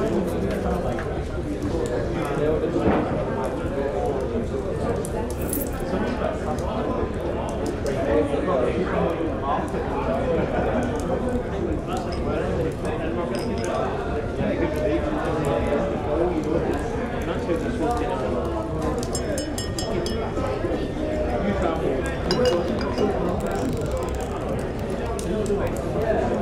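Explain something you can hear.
A crowd of men and women chatters and murmurs indoors.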